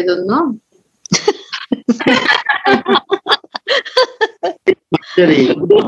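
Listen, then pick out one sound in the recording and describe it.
Two women laugh together over an online call.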